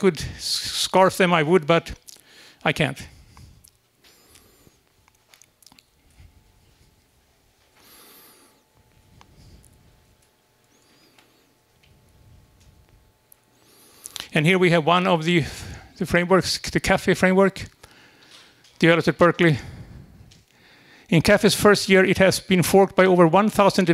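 A man speaks through a microphone in an echoing room, with pauses between phrases.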